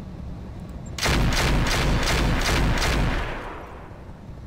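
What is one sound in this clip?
A laser weapon fires with a loud, buzzing blast.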